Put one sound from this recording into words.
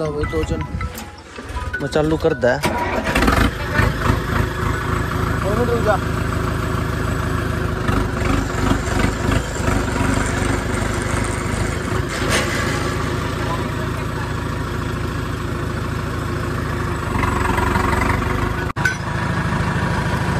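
A tractor engine rumbles and chugs close by.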